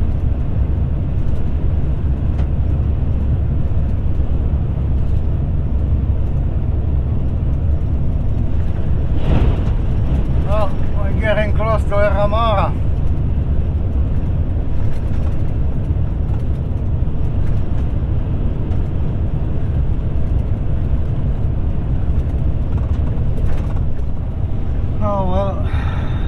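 A vehicle's engine and tyres rumble steadily on the road.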